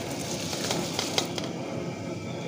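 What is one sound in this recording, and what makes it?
Rice pours and splashes into a pot of water.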